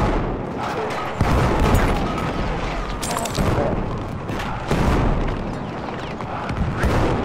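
A rapid burst of gunfire cracks close by.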